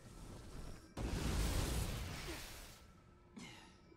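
A loud crackling burst of electric energy roars and fades away.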